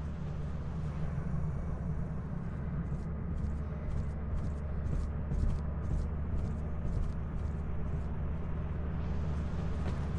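Footsteps crunch steadily over loose debris.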